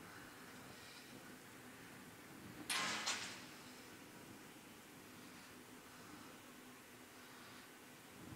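A furnace roars with a steady low rumble.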